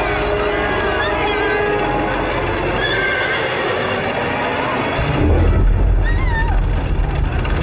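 A young woman cries out in distress.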